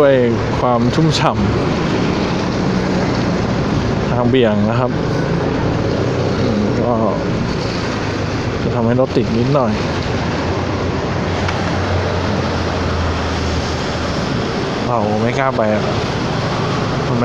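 Wind and rain rush past a moving rider.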